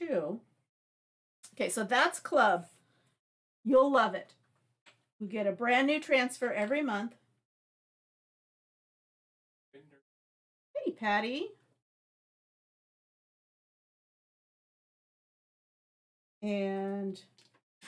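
A middle-aged woman talks calmly into a close microphone, in short bursts.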